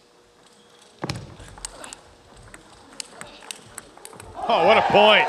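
A table tennis ball clicks back and forth off paddles and a table.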